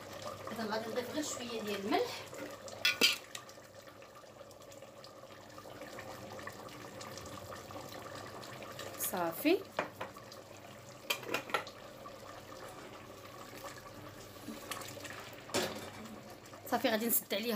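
A stew bubbles gently in a pot.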